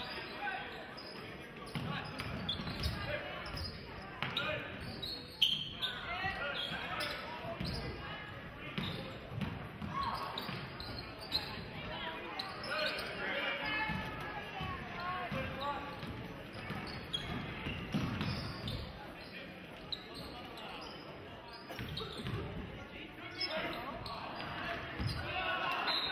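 A crowd in a large echoing gym chatters and cheers throughout.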